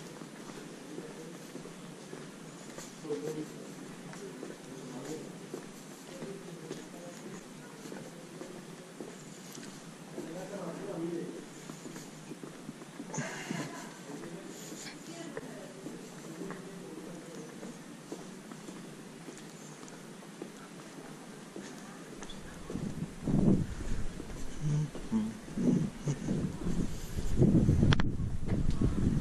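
Footsteps fall on stone paving at a steady walking pace.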